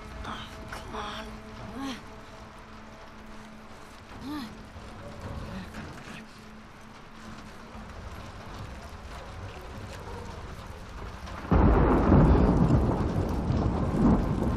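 A cart's wheels rattle and roll across a wooden floor.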